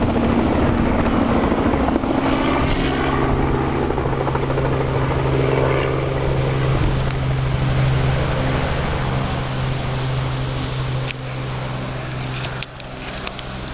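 A helicopter's rotor thumps loudly close by, then fades as the helicopter flies away.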